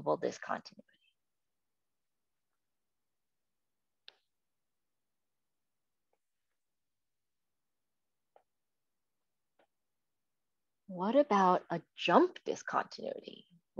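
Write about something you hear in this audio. A woman speaks calmly through an online call, pausing between phrases.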